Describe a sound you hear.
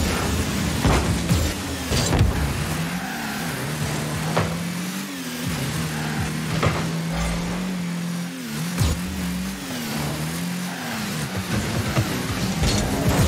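A game car engine hums steadily, rising and falling in pitch.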